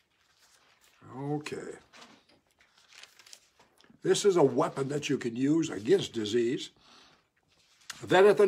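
An elderly man talks calmly and close by.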